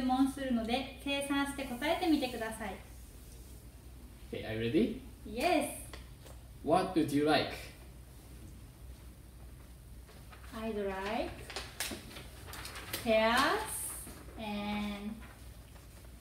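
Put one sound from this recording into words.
A young woman speaks clearly in a lively, teacher-like voice.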